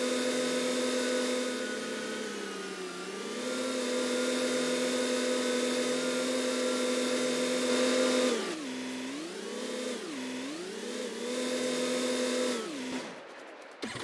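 A tractor engine drones steadily, its pitch dipping and rising as it slows and speeds up.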